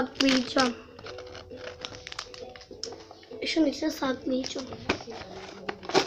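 A young girl speaks and squeals with animation close by.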